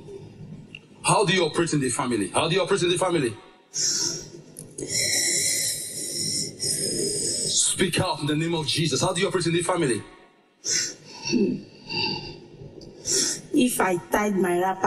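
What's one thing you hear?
A woman speaks with animation into a microphone in a large echoing hall.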